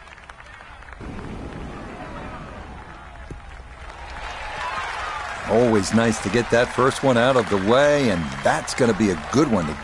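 A crowd cheers and applauds in the distance.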